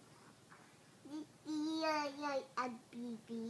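A young girl speaks close by in a high, playful voice.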